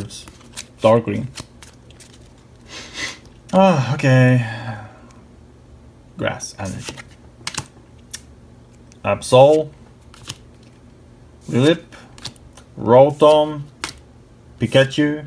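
Trading cards flick and rustle as they are shuffled.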